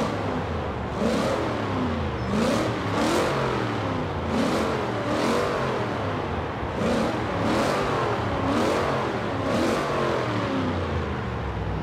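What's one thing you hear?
A car engine revs sharply again and again.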